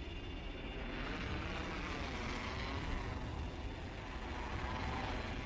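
Wind rushes steadily past during a fast descent.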